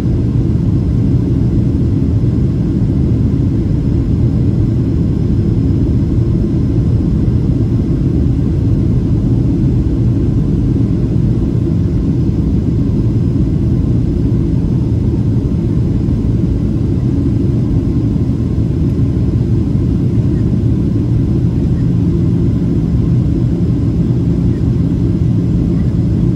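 Jet engines roar steadily inside an airliner cabin.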